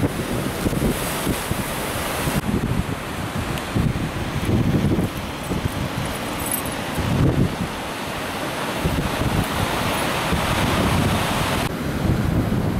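Waves wash and break on a shore.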